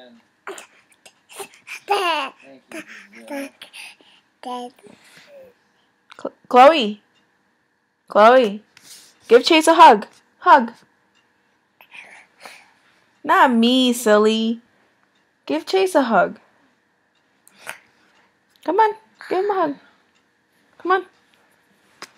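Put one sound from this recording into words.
Babies babble and squeal close by.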